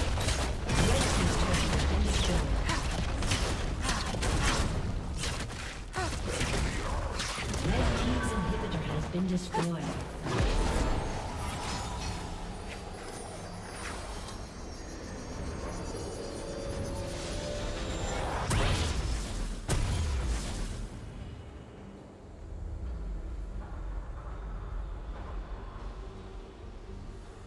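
Magic blasts and clashing hits crackle in a fast fight.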